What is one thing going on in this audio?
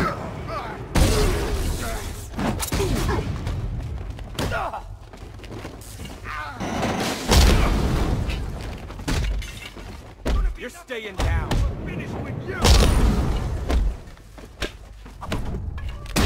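Bodies crash to the ground with loud thumps.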